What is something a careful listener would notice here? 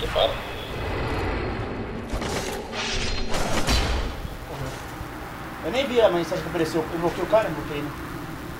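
Swords clash and strike with sharp metallic hits.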